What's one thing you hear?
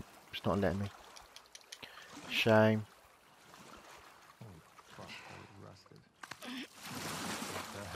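Water splashes as a swimmer paddles along.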